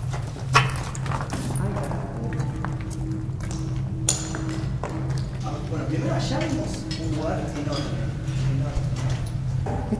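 A young man talks quietly in a dark echoing space.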